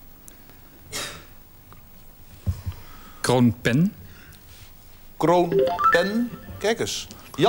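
A middle-aged man speaks slowly into a microphone, pausing between words.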